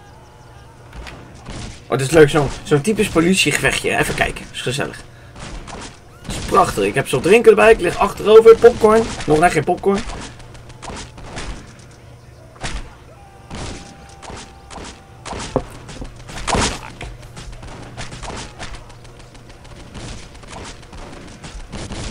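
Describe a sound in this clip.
Gunshots crack repeatedly in a video game.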